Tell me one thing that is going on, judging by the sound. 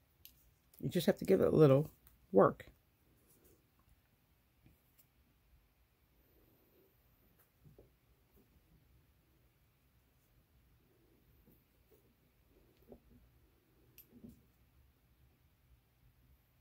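A small metal tool clicks faintly.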